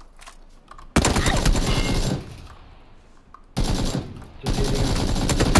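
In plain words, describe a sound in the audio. A rifle fires in quick bursts.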